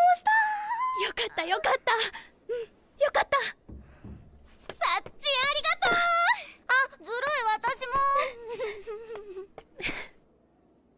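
A young girl exclaims excitedly in a high voice.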